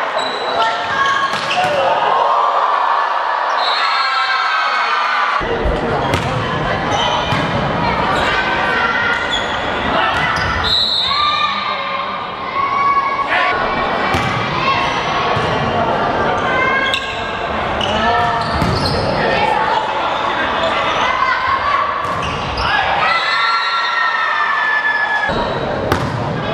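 Young women shout and cheer loudly across a large echoing hall.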